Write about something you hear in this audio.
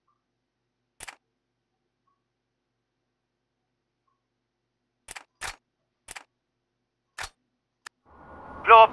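Menu buttons click several times.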